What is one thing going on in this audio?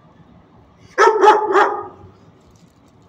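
A dog barks sharply a few times close by.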